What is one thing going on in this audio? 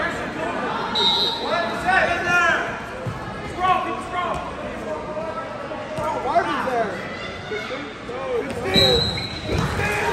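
A whistle blows sharply.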